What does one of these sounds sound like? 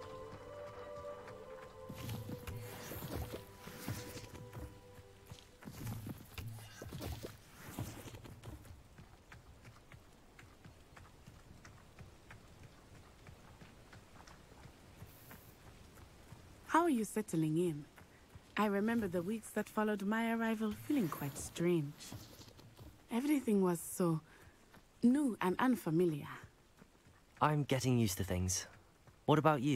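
Footsteps run over a dirt path.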